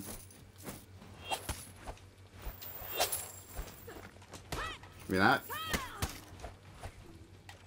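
Swords clash and strike in quick sharp blows.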